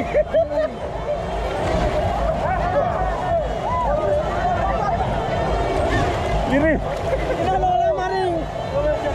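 Young men shout and whoop excitedly close by.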